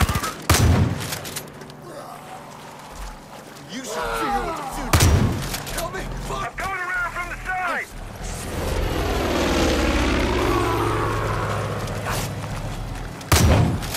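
A shotgun fires loudly.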